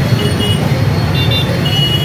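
Motorbike engines idle nearby.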